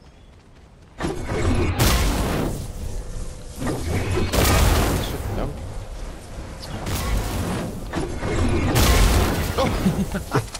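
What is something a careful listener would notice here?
A pickaxe strikes rock with heavy, crunching blows.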